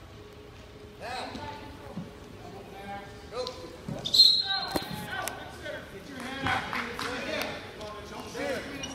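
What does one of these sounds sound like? Spectators shout encouragement loudly in a large echoing hall.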